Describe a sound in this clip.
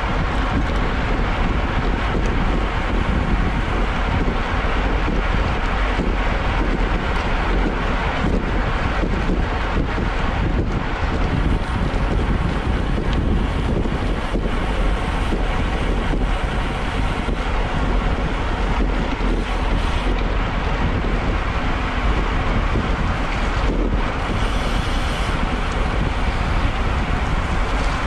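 Bicycle tyres hum on a wet road.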